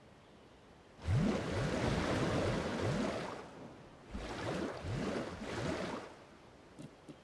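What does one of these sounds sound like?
Water gushes and splashes as a pond fills.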